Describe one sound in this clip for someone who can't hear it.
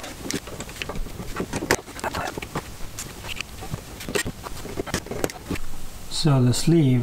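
Small metal tools click and scrape against plastic parts.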